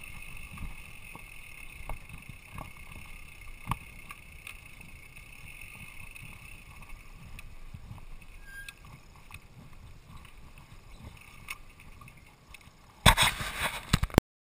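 A bicycle rattles over bumps with sharp knocks.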